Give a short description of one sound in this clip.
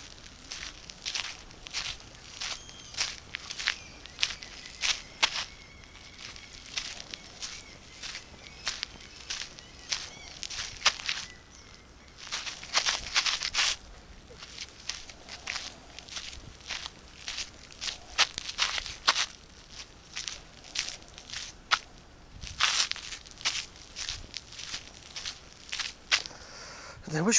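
Sandals scrape and slap on gritty pavement with each step.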